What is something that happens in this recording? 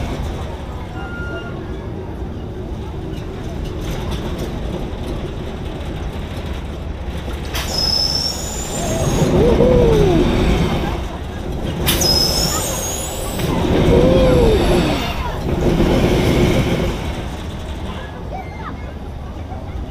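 Wind rushes loudly past a microphone on a moving ride.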